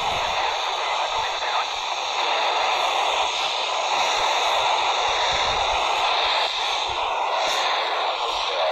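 Wind gusts against a microphone outdoors.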